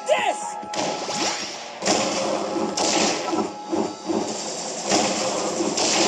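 Video game music plays throughout.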